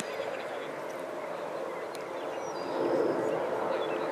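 A foot kicks a soccer ball.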